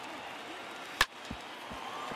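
A wooden baseball bat cracks against a ball.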